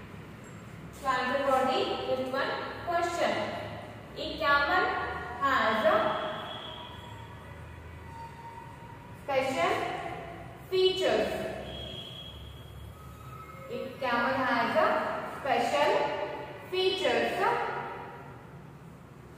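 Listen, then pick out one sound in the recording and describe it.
A woman speaks clearly nearby, reading out in short phrases.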